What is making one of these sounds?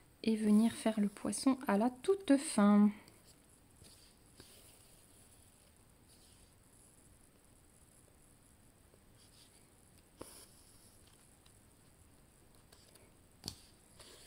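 Thread rasps softly as it is pulled through cloth.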